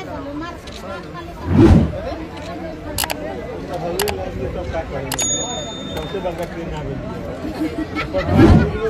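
A crowd of people chatters around the listener.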